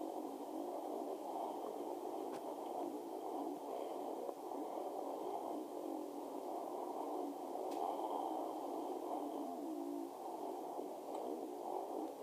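A motorcycle engine buzzes and revs through a small loudspeaker.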